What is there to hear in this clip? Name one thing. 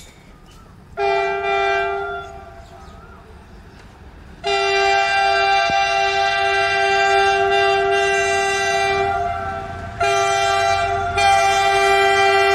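A train horn blares loudly in long blasts as a train approaches.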